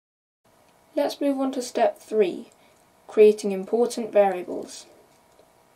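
A boy speaks calmly and close to a microphone.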